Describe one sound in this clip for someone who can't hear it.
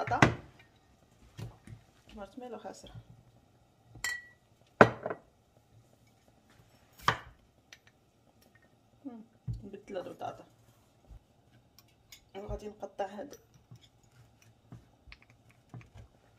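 A knife cuts through potatoes and taps on a wooden board.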